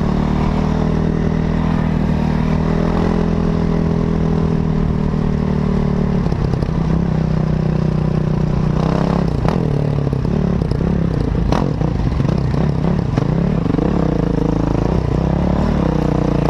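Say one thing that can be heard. A motorcycle engine drones steadily, then revs up and down.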